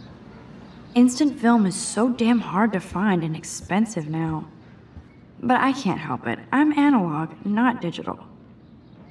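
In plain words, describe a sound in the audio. A young woman speaks calmly and close.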